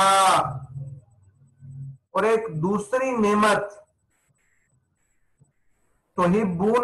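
A man recites in a slow, melodic chant close to a microphone.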